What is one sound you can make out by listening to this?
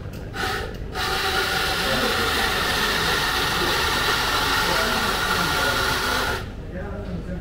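A coffee grinder whirs loudly and steadily, then stops.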